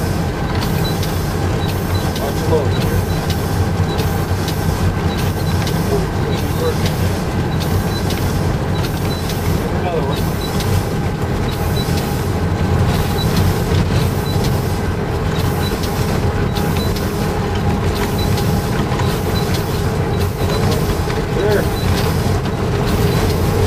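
A diesel locomotive engine rumbles steadily up close.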